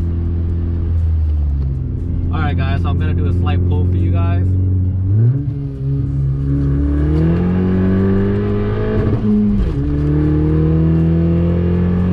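A car engine hums steadily and rises in pitch as it revs through the gears.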